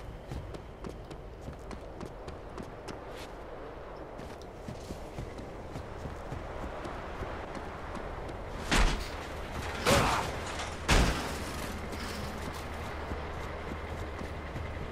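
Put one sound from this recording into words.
Footsteps crunch quickly on sand and gravel.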